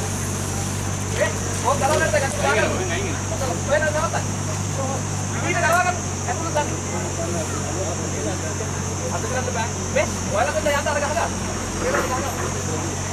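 Men call out and talk nearby.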